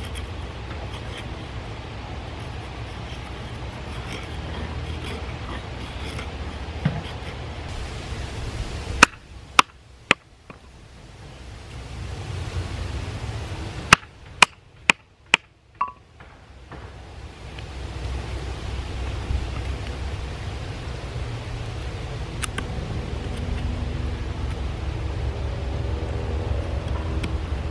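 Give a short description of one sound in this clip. A knife scrapes and shaves thin curls off a stick.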